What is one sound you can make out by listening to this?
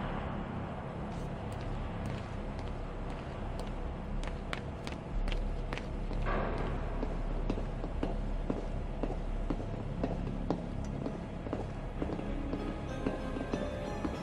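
Footsteps ring on metal steps and walkways.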